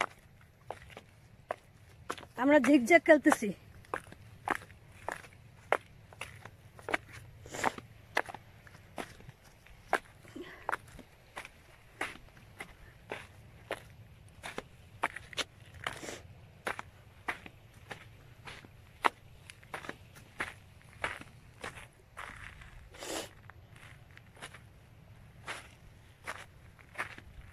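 Footsteps crunch on loose rocks and gravel close by.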